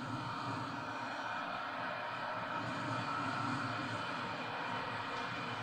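A stadium crowd roars steadily through a television speaker.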